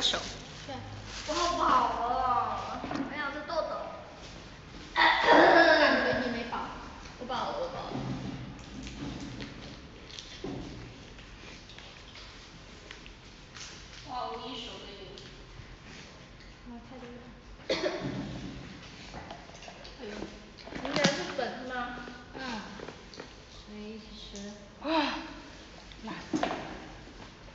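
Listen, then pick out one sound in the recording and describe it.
A young woman talks casually close to a phone's microphone.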